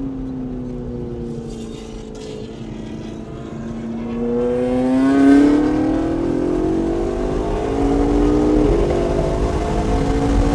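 Tyres rumble on the track.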